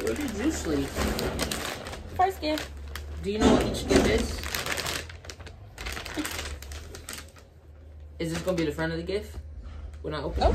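A plastic gift bag crinkles as it is handled.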